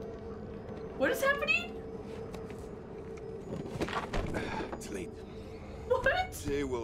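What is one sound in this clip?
A young woman talks and exclaims excitedly into a close microphone.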